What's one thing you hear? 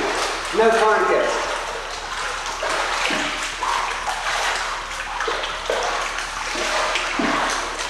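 Water splashes and sloshes as a person wades through a pool in an echoing hall.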